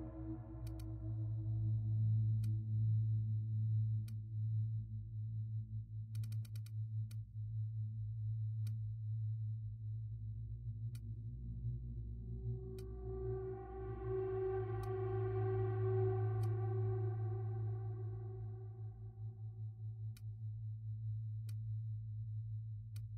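Short menu clicks sound again and again.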